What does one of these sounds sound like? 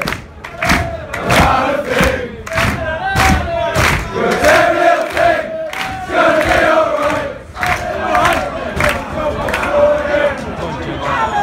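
A large football crowd of young men and women chants and sings in unison, close by under a stand roof.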